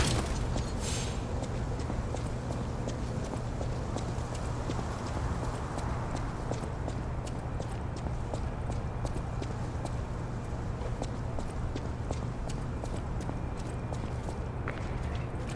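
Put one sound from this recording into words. Footsteps run over stone with faint clicks.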